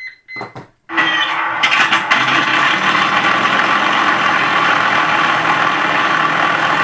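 A model plane's electric motor starts and whirs loudly and steadily.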